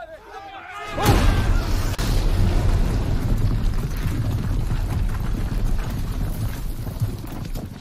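An explosion booms and rumbles loudly.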